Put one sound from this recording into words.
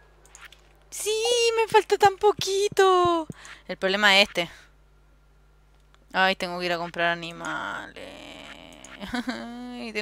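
A bright, tinkling melodic jingle plays in quick bursts.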